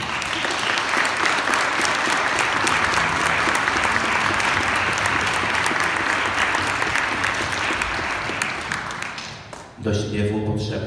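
A crowd applauds loudly in an echoing hall.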